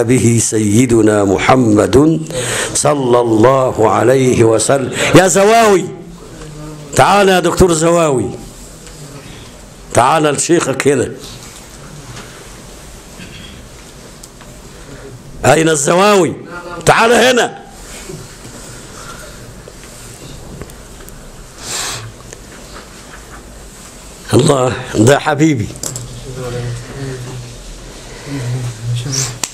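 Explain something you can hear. An elderly man speaks calmly into a microphone, in bursts with pauses.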